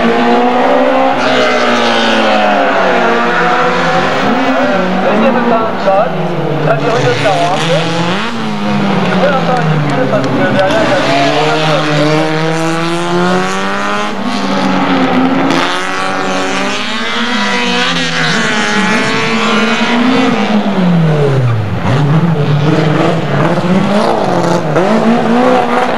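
A small racing car engine revs hard, rising and falling in pitch between gear changes.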